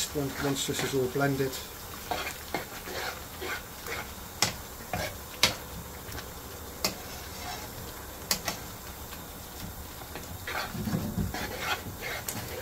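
A wooden spoon scrapes and knocks against a pan while stirring.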